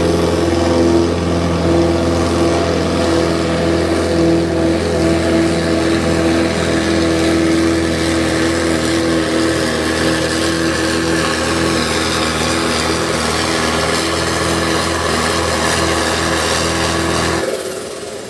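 A tractor engine roars loudly and steadily under heavy strain.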